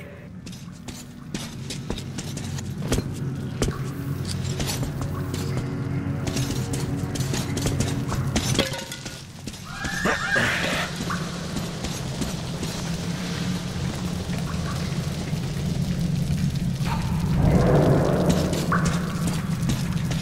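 Footsteps crunch over gravel and debris.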